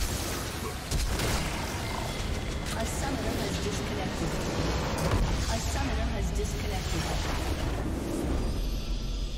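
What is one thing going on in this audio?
Game battle effects clash and explode loudly.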